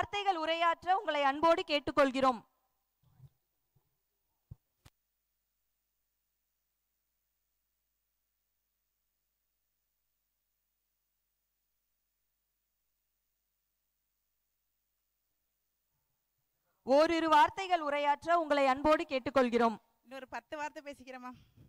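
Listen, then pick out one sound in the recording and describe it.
A woman sings through a loudspeaker outdoors.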